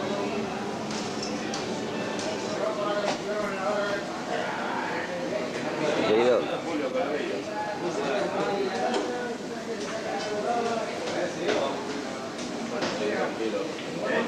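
Several voices chatter nearby.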